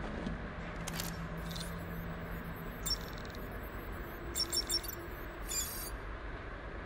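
An electronic device beeps in quick, high chirps.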